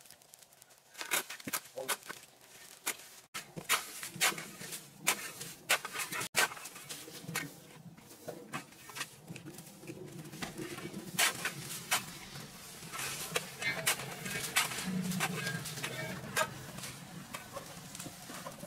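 A shovel blade knocks against the ground.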